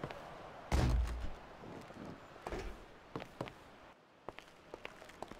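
Heavy footsteps thud on a hollow wooden ramp.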